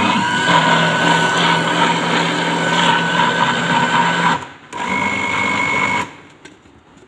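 A blender whirs loudly with a steady hum, then stops.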